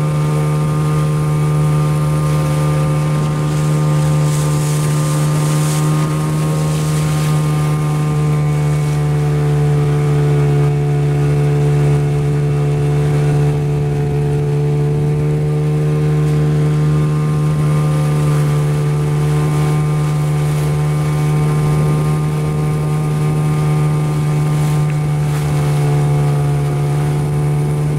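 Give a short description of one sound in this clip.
An outboard motor drones steadily at speed.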